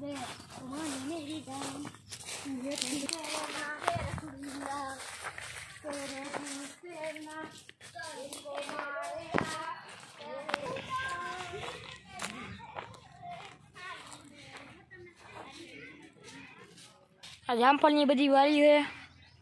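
A boy talks with animation close by.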